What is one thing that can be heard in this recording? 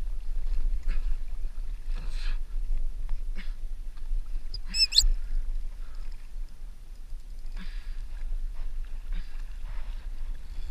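Wind blusters steadily across open water.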